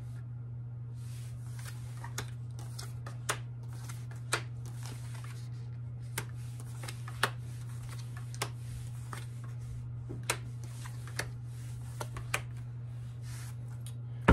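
Cards snap and tap against each other as they are shuffled.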